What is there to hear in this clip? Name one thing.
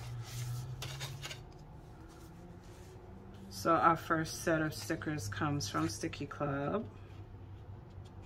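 Paper sheets rustle as they are handled.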